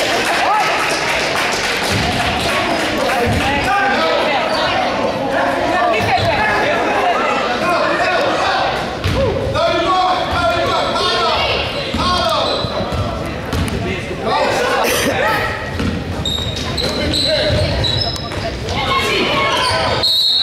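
A crowd of spectators cheers and shouts in an echoing gym.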